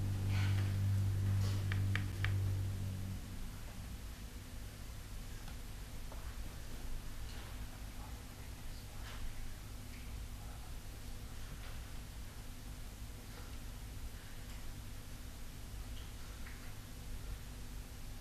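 An elderly man speaks softly and slowly.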